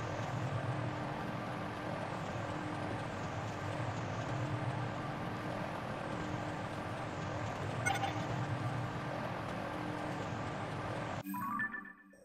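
A vehicle's motor drones steadily, then cuts off.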